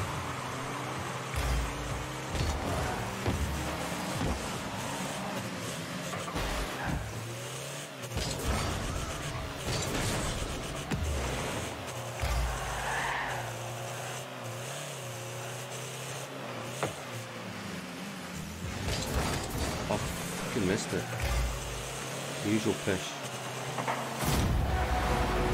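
Game car engines hum and boost steadily.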